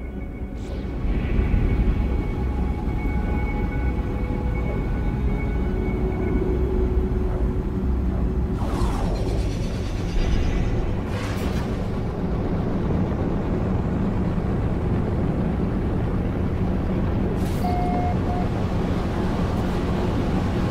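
A spaceship engine roars with a deep, steady rumble that grows louder.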